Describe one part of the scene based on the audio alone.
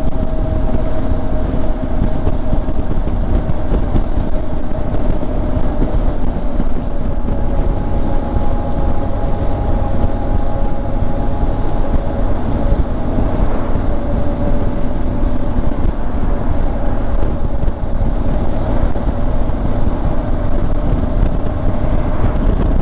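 Wind rushes loudly against the rider.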